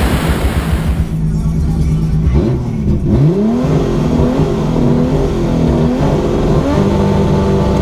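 A car engine idles and revs in short bursts from inside the car.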